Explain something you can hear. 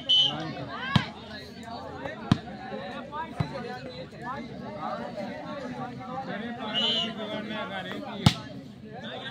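A ball is struck with a sharp slap.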